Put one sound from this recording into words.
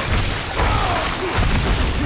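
Lightning cracks sharply.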